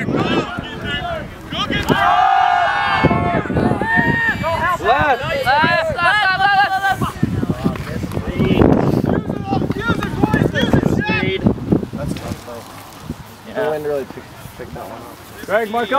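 Young men shout and cheer outdoors, close by and farther off.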